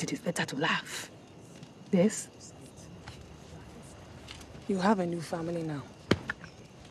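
A young woman speaks softly and warmly, close by.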